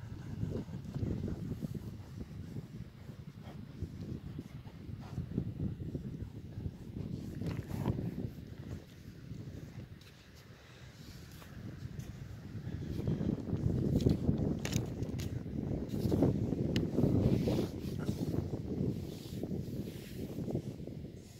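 Horses walk slowly over soft sand.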